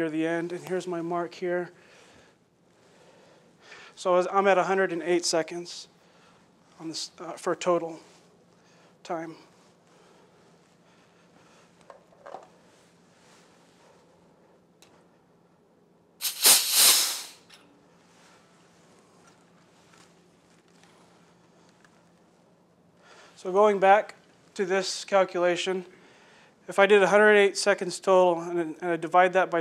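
A man speaks calmly to an audience through a microphone, with pauses.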